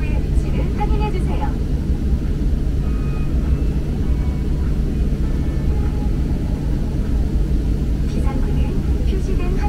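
An aircraft engine rumbles and hums steadily.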